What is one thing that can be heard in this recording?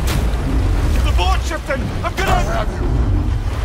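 A man shouts urgently, close by.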